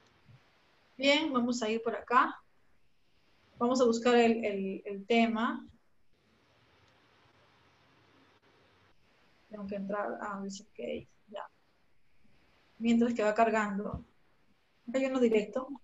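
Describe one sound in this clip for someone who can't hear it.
A young woman speaks calmly through an online call microphone, in short phrases with pauses.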